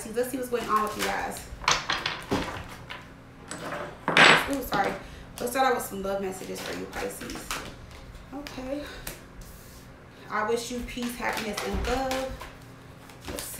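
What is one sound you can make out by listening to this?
Cards riffle and flutter as they are shuffled.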